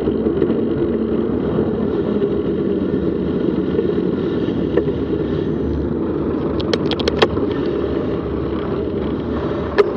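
Wind rumbles steadily over a microphone outdoors.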